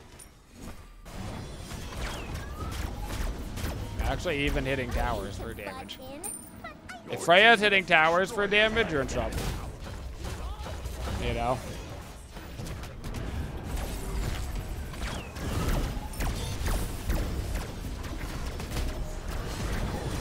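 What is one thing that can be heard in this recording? Video game spells and hits crackle and burst.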